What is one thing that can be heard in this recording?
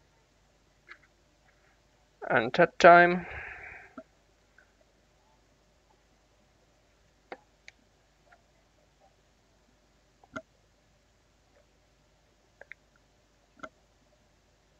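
Small plastic pieces click and tap against each other.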